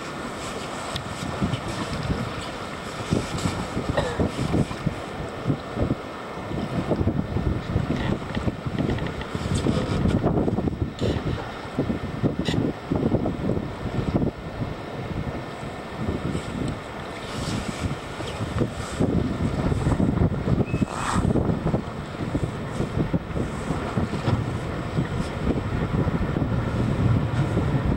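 Choppy waves slap and splash on the water.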